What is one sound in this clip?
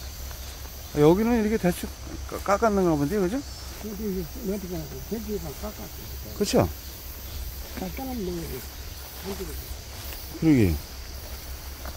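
An elderly man speaks nearby.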